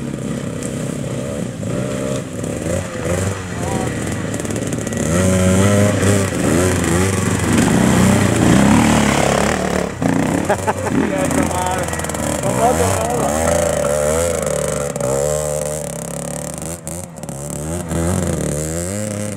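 Motorcycle engines putter and rev close by.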